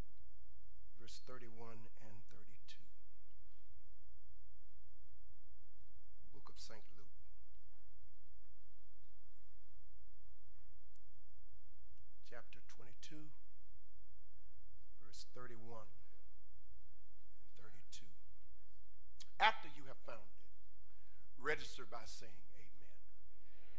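A man speaks into a microphone in short, measured phrases with long pauses, heard through a loudspeaker in an echoing room.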